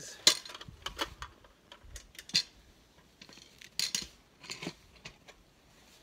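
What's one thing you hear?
Metal legs of a stand clank.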